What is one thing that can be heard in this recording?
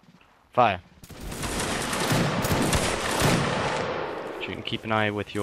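A volley of musket shots crashes out and rumbles away.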